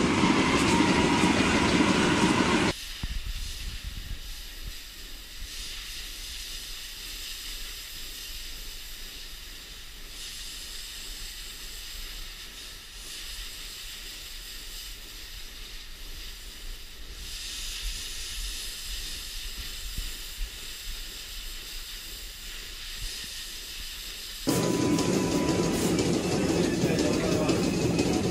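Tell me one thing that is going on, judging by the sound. Milking machines hum loudly.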